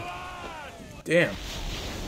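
Thunder cracks loudly.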